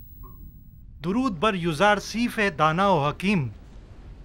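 A man speaks slowly and calmly, close by.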